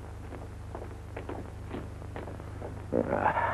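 Footsteps crunch on a gritty street.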